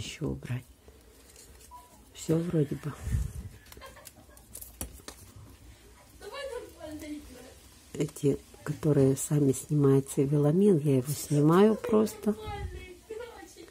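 Dry plant roots rustle and crackle as hands pull them apart.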